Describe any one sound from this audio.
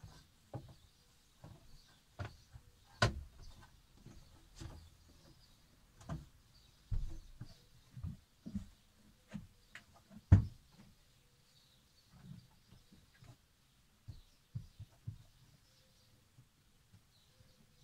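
A woman bumps and knocks things while cleaning under a sink.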